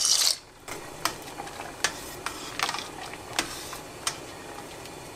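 A metal spoon stirs and clinks against a pot.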